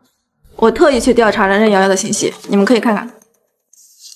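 A woman speaks calmly and clearly.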